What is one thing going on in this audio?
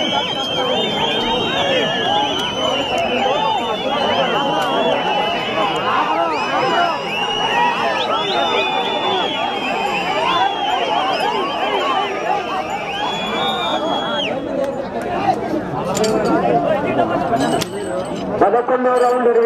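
A large crowd of men shouts and cheers outdoors.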